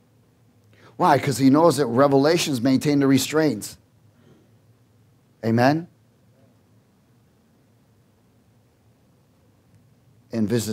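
A man speaks with animation into a microphone, in bursts with long pauses.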